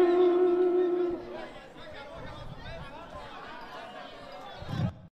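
A young man sings.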